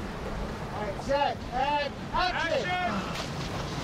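A man shouts close by.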